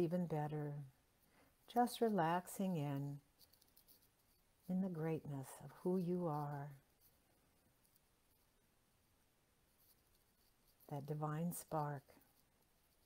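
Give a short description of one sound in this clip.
A woman speaks calmly and slowly, close to a microphone, with long pauses.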